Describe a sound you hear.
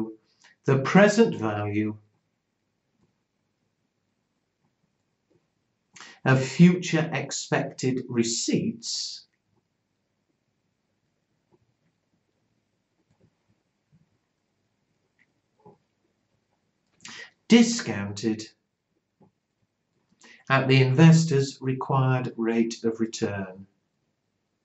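An elderly man speaks calmly and clearly into a close microphone, in short phrases with pauses.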